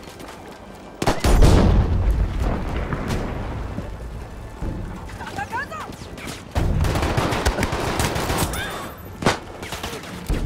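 Pistol shots crack sharply.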